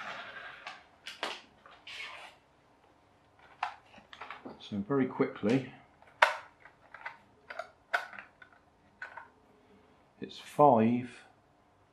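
Plastic parts of a toy car click and rattle as they are handled.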